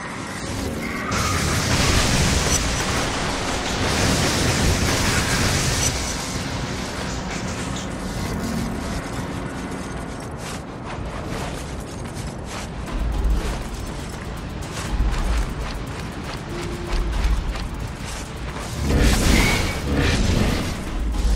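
Electric bolts crackle and zap in short bursts.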